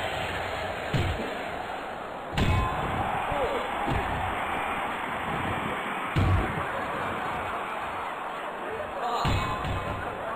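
Heavy thuds ring out as bodies slam against the ring.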